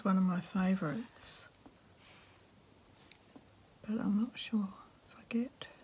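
Scissors clink as they are picked up.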